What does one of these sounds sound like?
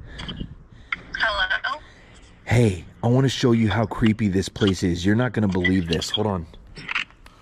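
A young woman talks with animation through a phone's small speaker.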